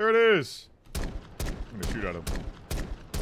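Gunshots bang in quick succession.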